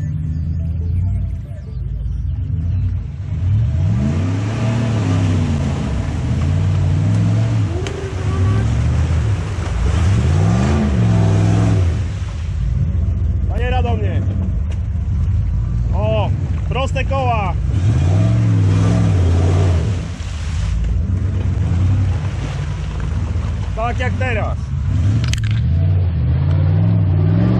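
An engine revs hard, rising and falling in pitch.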